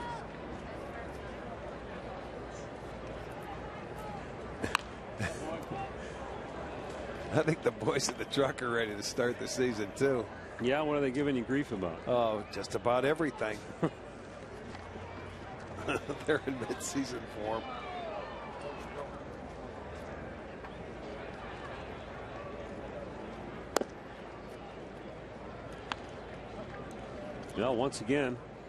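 A crowd murmurs softly outdoors.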